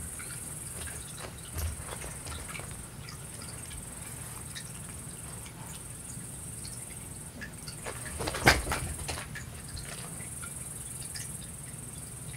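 A cat's paws patter across a soft floor.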